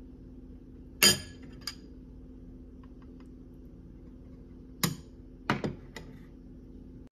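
A fork taps against a ceramic bowl.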